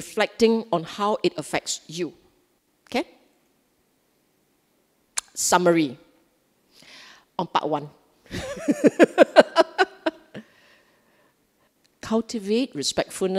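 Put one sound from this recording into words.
A middle-aged woman talks calmly into a microphone, in short bursts with pauses.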